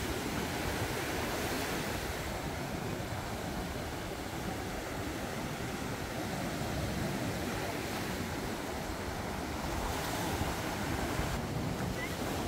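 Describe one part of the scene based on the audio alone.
Waves break and wash up onto the shore.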